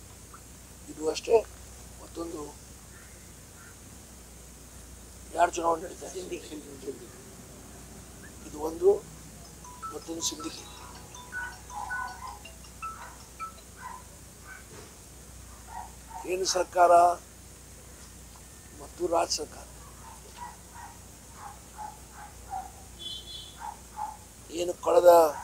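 An elderly man speaks with animation into a nearby microphone, with pauses.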